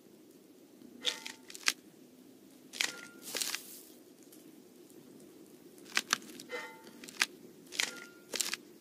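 Short clicks and bright chimes sound as pieces are moved and set down.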